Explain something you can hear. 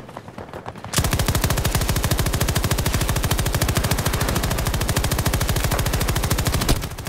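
A machine gun fires in long, rapid bursts.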